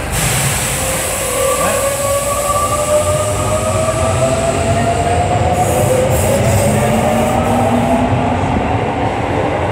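A train rumbles loudly along the platform.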